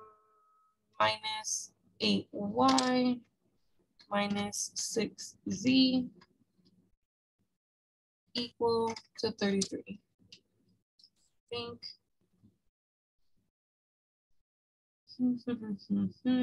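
A young woman explains calmly over a microphone, with pauses.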